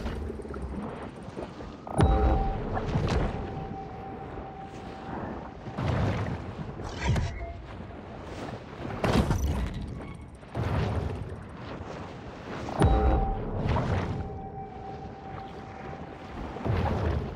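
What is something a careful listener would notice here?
Water rushes and swirls in surges as a shark swims underwater.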